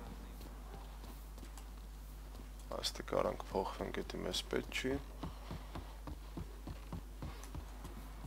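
Footsteps walk steadily across a floor.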